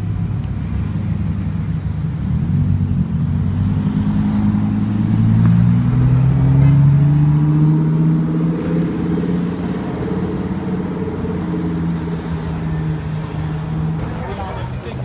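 A sports car engine rumbles loudly close by and rises in pitch as it pulls away.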